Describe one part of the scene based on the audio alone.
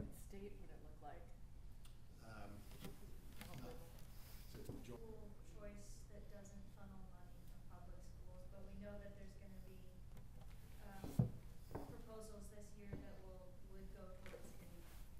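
An older man speaks calmly and formally into a microphone.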